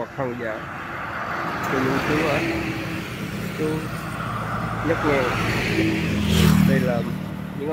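A truck rumbles past close by.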